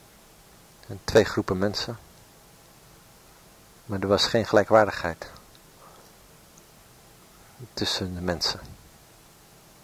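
A man speaks through a microphone in short bursts.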